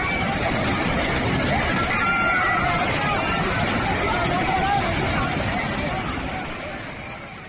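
Women scream in panic close by.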